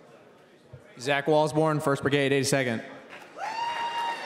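A young man speaks loudly into a microphone, amplified over loudspeakers in a large hall.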